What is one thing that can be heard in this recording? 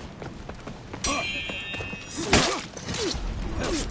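Swords clash with sharp metallic rings.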